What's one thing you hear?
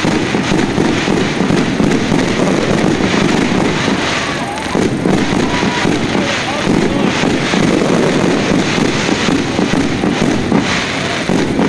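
Fireworks crackle and bang loudly overhead without a break.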